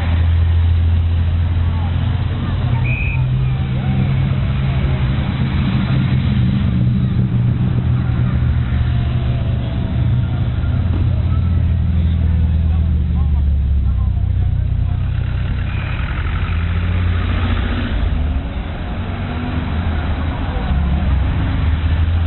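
Old car engines rumble as cars drive slowly past outdoors.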